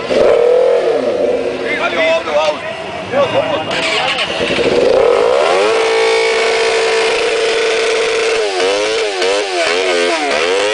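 A motorcycle engine roars and revs up and down loudly close by.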